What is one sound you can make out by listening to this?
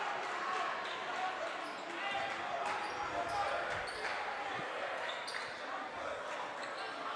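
A crowd cheers and chatters loudly in a large echoing gym.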